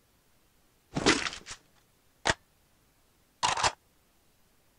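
A weapon clicks and clatters as it is picked up.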